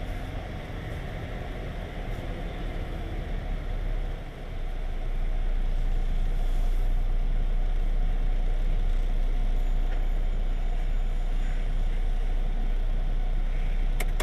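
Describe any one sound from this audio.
A car engine hums steadily while driving and slowing down.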